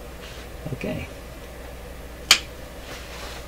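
A small metal part clicks as it is handled.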